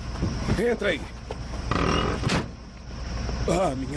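A truck door opens and slams shut.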